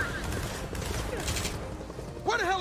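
Gunfire and explosions crackle.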